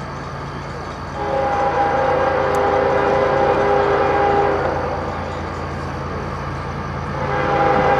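A vehicle engine hums steadily as it approaches along the road.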